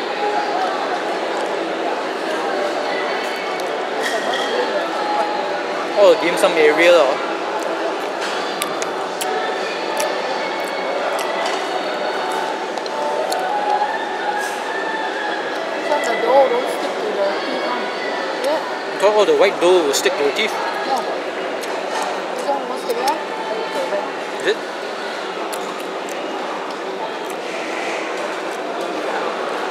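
A crowd chatters in a busy, echoing room.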